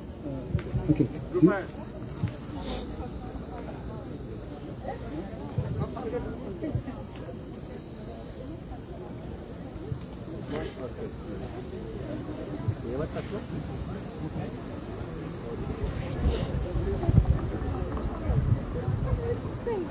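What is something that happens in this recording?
An elderly man speaks into a microphone through a loudspeaker outdoors.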